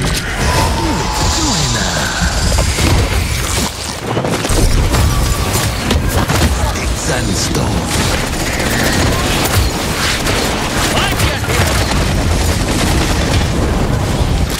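Fiery explosions roar in a game battle.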